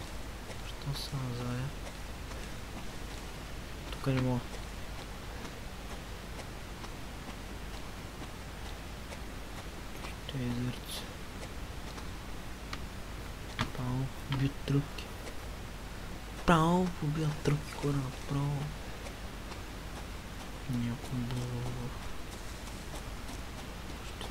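Footsteps crunch through dry leaves and brush.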